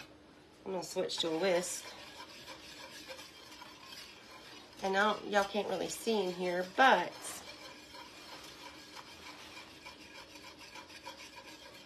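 A whisk scrapes and taps inside a metal pot.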